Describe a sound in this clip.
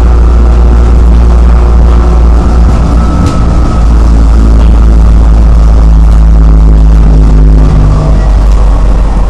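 A train's electric motor hums loudly and steadily, then eases off.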